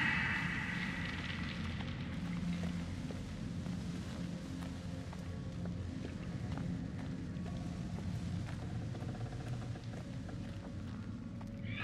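Footsteps crunch slowly on rough ground.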